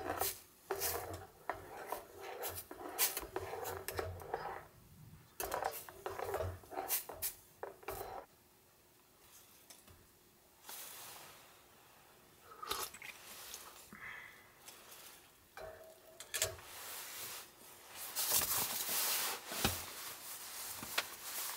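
A metal spoon clinks and scrapes against a metal cup.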